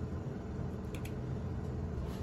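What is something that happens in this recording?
A button clicks as it is pressed.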